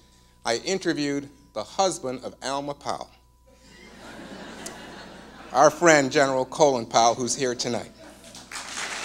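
A middle-aged man speaks calmly through a microphone in a large hall.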